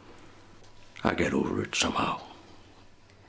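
A man speaks briefly and firmly close by.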